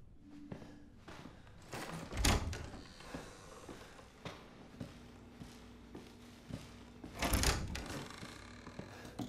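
Footsteps thud slowly on a creaky wooden floor.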